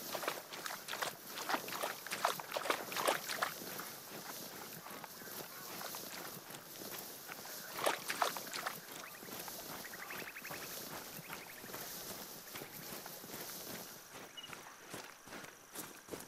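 Tall grass rustles and swishes as someone pushes through it on foot.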